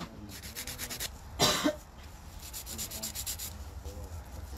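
A nail file rasps back and forth against a fingernail.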